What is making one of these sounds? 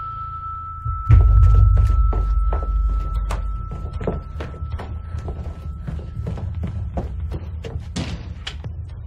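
Footsteps creak along a wooden floor.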